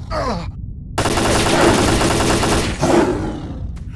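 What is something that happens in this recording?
Gunshots fire in rapid bursts, close and loud.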